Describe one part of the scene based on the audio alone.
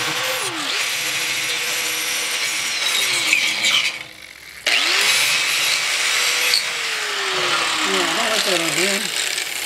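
An angle grinder whines loudly as it grinds metal, cutting out briefly and starting again.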